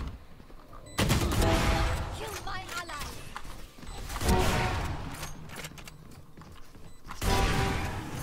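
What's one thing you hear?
A sniper rifle fires loud, booming shots.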